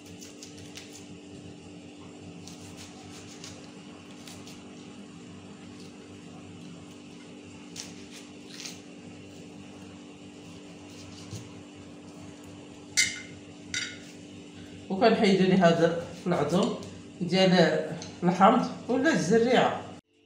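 A knife scrapes softly as fruit is peeled by hand.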